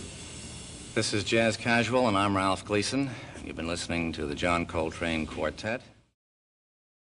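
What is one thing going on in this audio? A man speaks calmly and clearly to an audience.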